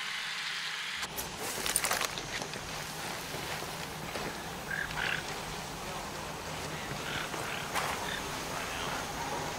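Footsteps crunch over dirt and leaves.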